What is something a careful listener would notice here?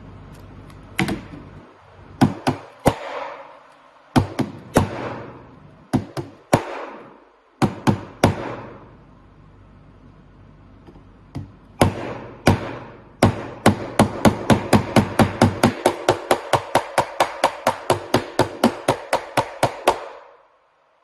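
A phone is struck against a hard surface, knocking sharply over and over.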